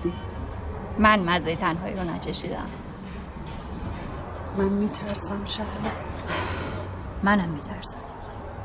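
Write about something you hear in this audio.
Another woman answers calmly, close by.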